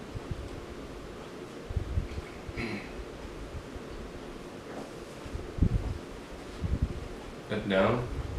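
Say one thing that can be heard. Pages of a booklet rustle and flip.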